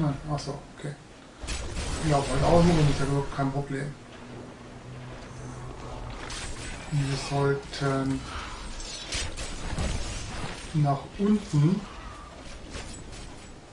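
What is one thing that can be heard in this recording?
Weapons clash and magic bursts in a fast-paced game fight.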